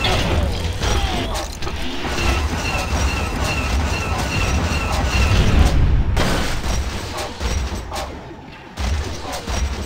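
A heavy mechanical walker stomps and clanks.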